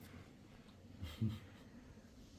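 A ball thumps softly on a carpet.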